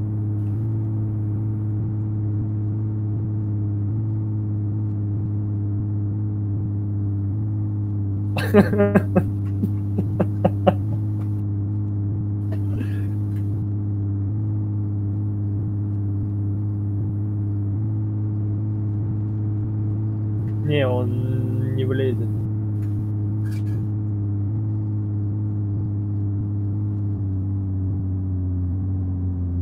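Tyres roll on an asphalt road.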